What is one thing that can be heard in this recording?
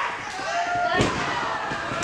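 A kick lands hard on a wrestler's body.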